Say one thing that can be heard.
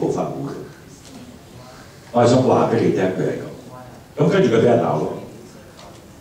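A middle-aged man speaks into a microphone through a loudspeaker in an echoing room, in short bursts.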